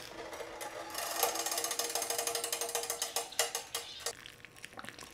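Water pours from a kettle into a glass teapot.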